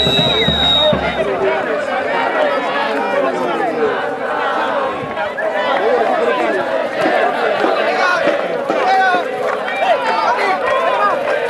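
A large crowd of spectators cheers and shouts outdoors.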